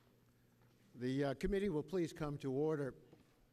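A man speaks into a microphone in a large room.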